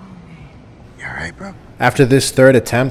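A young man groans in pain.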